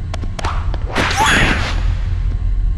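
A magical blast bursts and whooshes.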